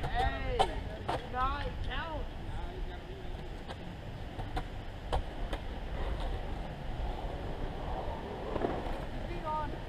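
Skateboard wheels roll and clack on concrete in the distance.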